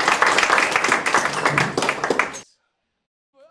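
Drums crash and pound.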